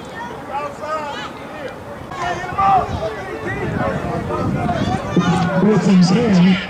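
Boys and men shout and call out across an open field.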